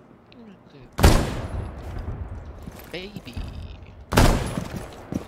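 A rifle fires two loud single shots that echo.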